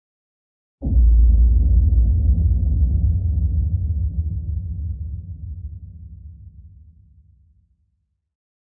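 Thunder rumbles deeply and slowly fades away.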